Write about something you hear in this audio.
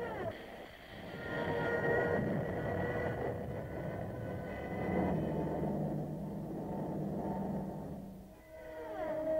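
Aircraft engines drone overhead.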